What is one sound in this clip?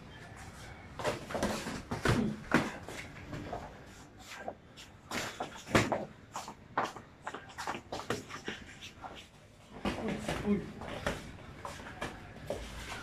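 Boxing gloves thud against each other in quick bursts of punches.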